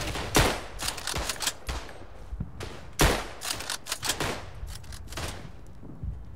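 Gunshots crack and echo in rapid bursts.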